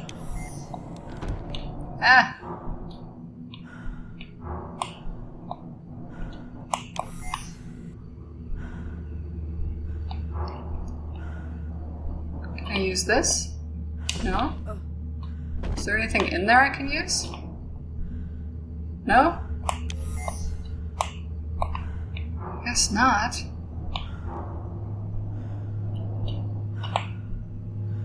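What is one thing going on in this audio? A young woman talks into a close microphone, calmly and with occasional animation.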